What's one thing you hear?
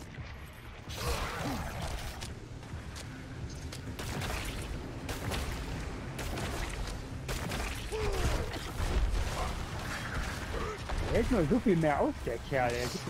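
A game character slashes at enemies with heavy weapon strikes.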